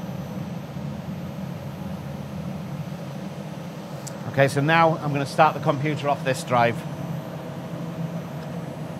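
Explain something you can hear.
Computer equipment hums steadily.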